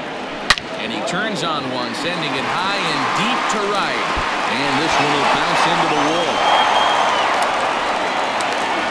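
A stadium crowd cheers louder and louder.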